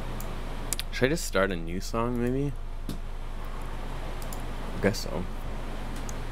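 A man speaks briefly and casually into a nearby microphone.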